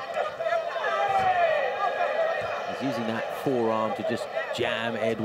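A crowd cheers and shouts in a large arena.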